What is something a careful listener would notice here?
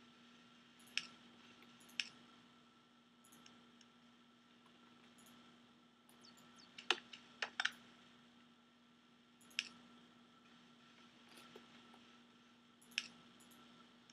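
Short sharp clicks sound now and then as items are placed.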